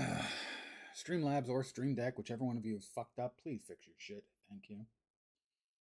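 An older man talks calmly and close to a microphone.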